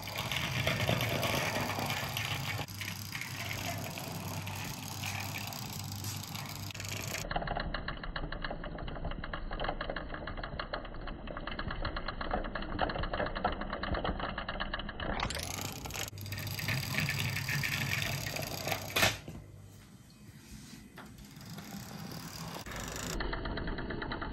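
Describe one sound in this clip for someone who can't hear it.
Small plastic wheels of a toy car roll along a hard surface.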